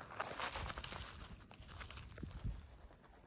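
Small stones rattle and scrape as a hand digs through loose gravel.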